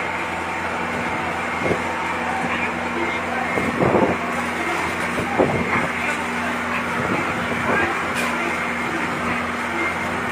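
A truck engine idles steadily close by.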